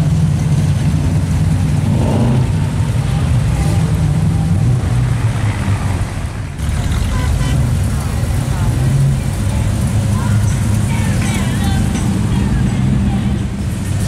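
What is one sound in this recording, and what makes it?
Car engines rumble and idle close by.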